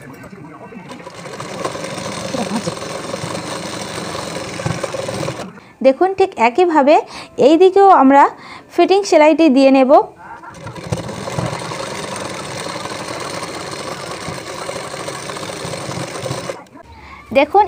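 A sewing machine runs with a steady whirring hum.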